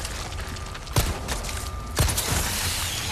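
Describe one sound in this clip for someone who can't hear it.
Pistol shots ring out with a sharp crack and echo.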